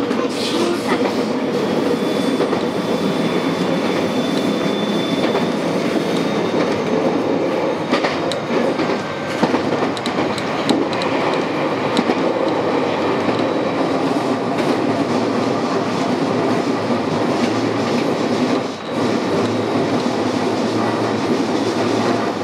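Wheels click over rail joints.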